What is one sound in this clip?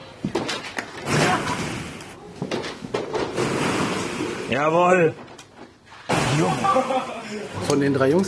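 Plastic balls rustle and clatter as a boy plunges into a ball pit.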